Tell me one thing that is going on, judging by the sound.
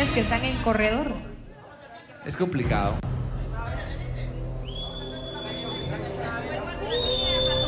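A crowd shouts and cheers.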